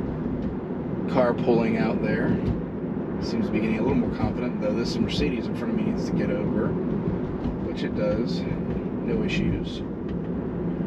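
A young man talks calmly close by.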